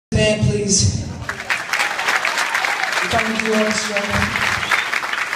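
A man sings into a microphone over loudspeakers in a large hall.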